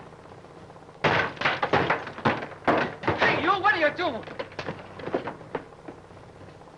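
Men shout and grunt as they grapple.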